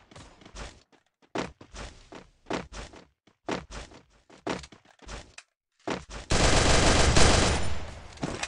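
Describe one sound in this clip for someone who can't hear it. A rifle fires in quick bursts of shots.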